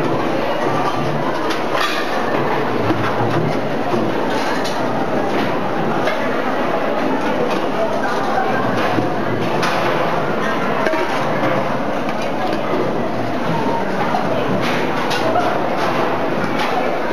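Metal serving spoons clink against pots and trays.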